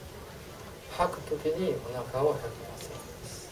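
A man speaks calmly into a clip-on microphone.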